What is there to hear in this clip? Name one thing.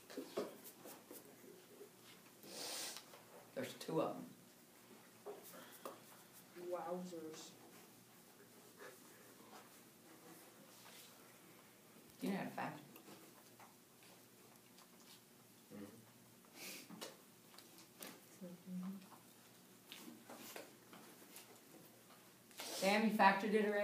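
An older woman speaks calmly nearby, with long pauses.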